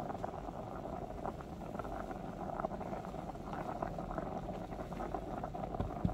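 A plastic spoon stirs thick porridge softly.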